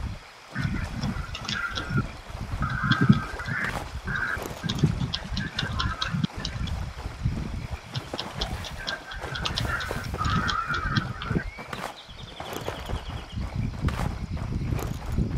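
Footsteps crunch over grass and gravel.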